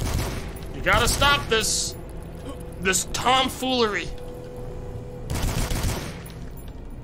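A gun fires with loud bursts.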